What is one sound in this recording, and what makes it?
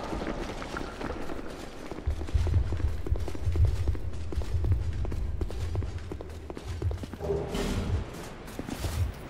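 Armoured footsteps crunch on gravel at a quick, steady pace.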